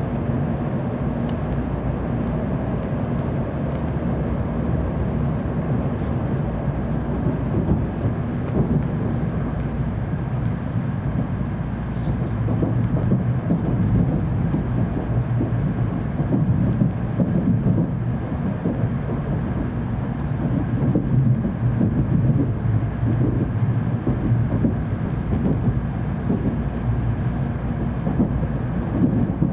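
A train rumbles steadily as it rolls along the tracks.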